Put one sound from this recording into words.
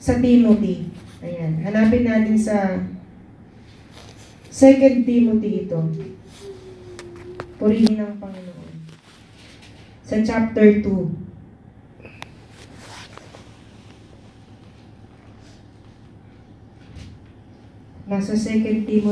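A young woman speaks slowly and with feeling through a microphone, pausing between phrases.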